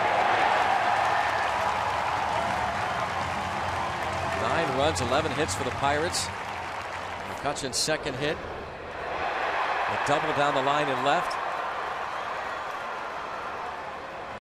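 A large crowd cheers and murmurs in a big open stadium.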